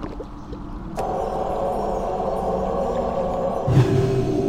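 A magical spell hums with a steady chime.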